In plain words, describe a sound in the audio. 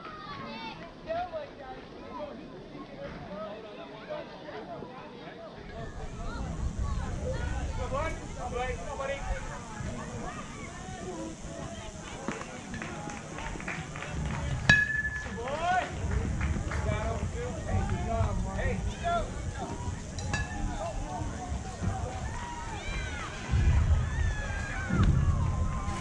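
Children and adults shout and cheer outdoors at a distance.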